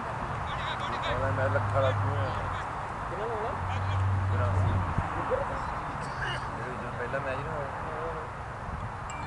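Men call out across an open field.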